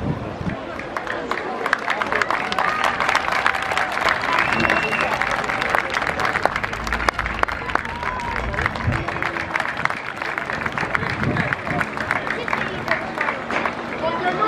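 A crowd cheers and claps from about halfway through.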